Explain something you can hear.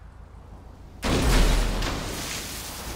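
A car crashes into water with a loud splash.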